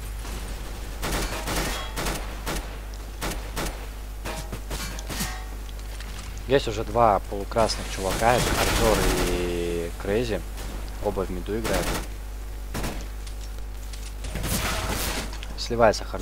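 Gunshots fire in short bursts.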